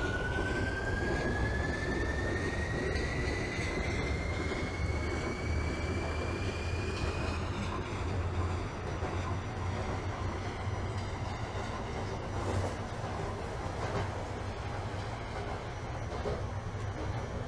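Subway train wheels rumble on the rails in a tunnel.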